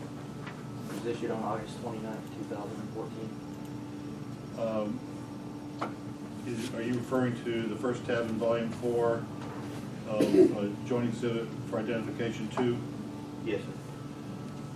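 A man speaks calmly into a microphone in a room with a slight echo, pausing now and then.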